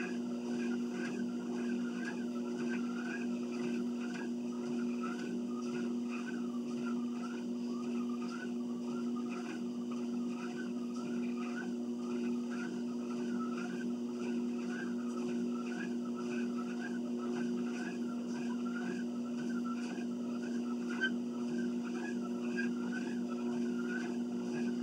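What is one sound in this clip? A treadmill motor hums.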